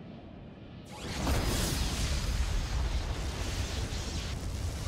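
A deep, roaring magical rumble swells up suddenly and keeps surging.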